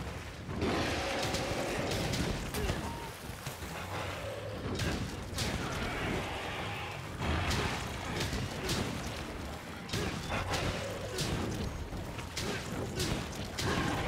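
A large monster roars and growls.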